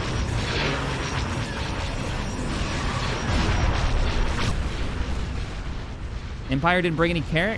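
A spaceship's engines rumble with a low, steady roar.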